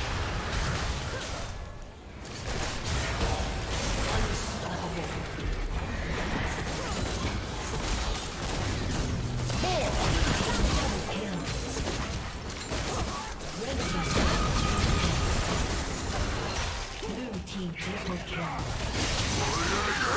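Game spell effects whoosh, clash and burst in rapid fights.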